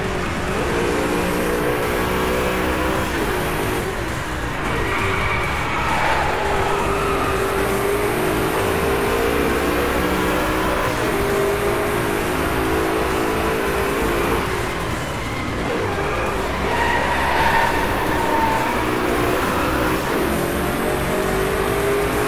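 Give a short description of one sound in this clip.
Tyres hiss over the road at speed.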